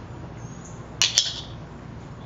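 A metal trowel is set down on concrete with a light clink.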